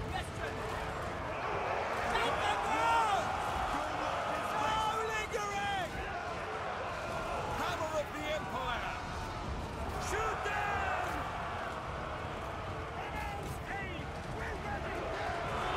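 A battle rumbles with clashing weapons and distant cries.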